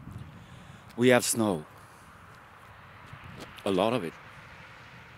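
A man speaks loudly and with animation close by, outdoors.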